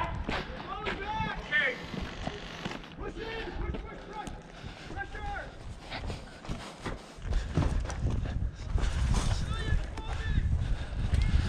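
Footsteps crunch on dirt and rubble.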